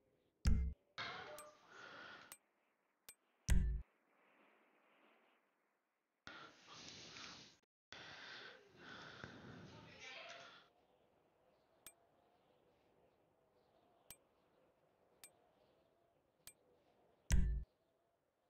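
Short menu clicks tick now and then.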